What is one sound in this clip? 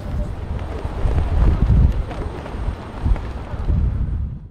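Wind gusts across a microphone outdoors.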